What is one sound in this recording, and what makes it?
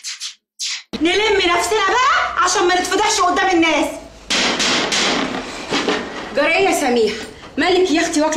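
A young woman talks with agitation.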